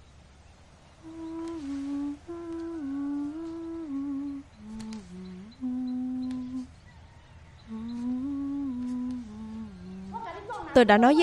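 A young woman hums a gentle melody.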